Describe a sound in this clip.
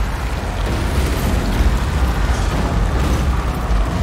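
Heavy rain pours down in a storm.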